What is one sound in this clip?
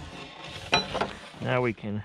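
A hand saw rasps through a wooden board.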